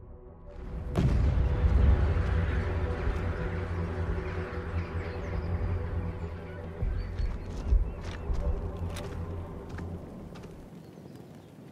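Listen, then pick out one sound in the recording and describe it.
Distant explosions rumble and boom over open ground.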